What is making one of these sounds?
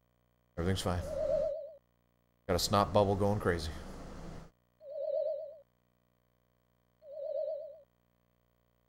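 Short electronic game chimes sound as figures pop up.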